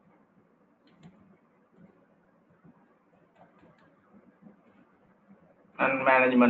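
Keyboard keys click softly as someone types.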